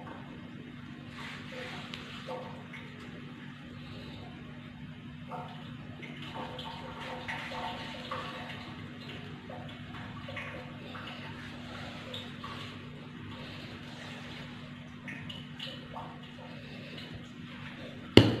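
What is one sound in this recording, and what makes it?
Hands crumble and rub dry soil, rustling softly.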